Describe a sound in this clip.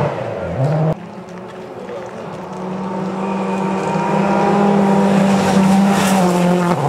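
A rally car engine roars closer and louder, then races past.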